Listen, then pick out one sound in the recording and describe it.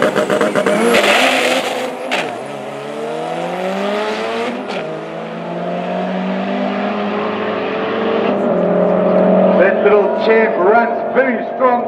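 Two car engines roar and rise in pitch as the cars accelerate away.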